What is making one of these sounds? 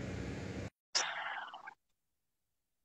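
A man speaks briefly close by.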